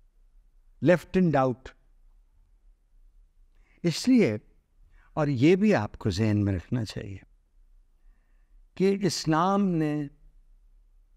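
A middle-aged man speaks close to a microphone, with animation, in short bursts and pauses.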